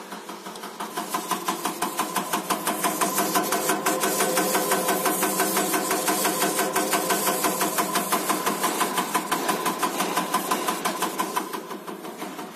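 A fuel injector hisses loudly as it sprays.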